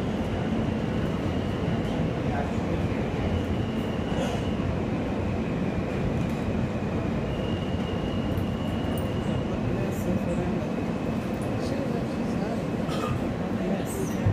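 A subway train rumbles at speed through a tunnel.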